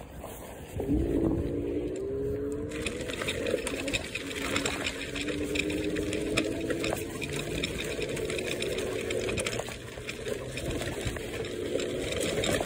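An electric motor whines, rising and falling in pitch.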